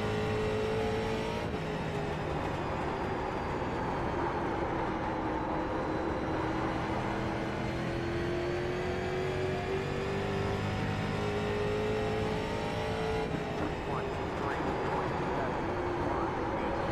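A race car engine roars steadily, its pitch rising and falling with the gears.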